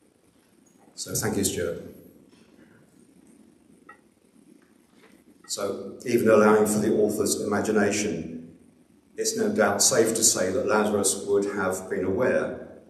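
A second older man speaks calmly into a microphone in an echoing hall.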